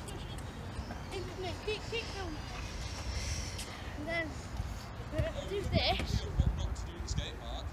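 A young boy talks near the microphone.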